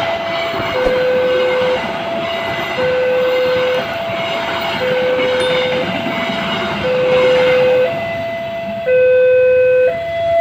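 A train rumbles past on the rails, close by.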